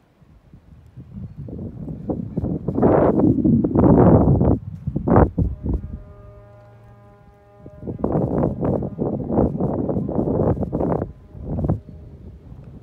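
Wind gusts loudly outdoors, buffeting in bursts.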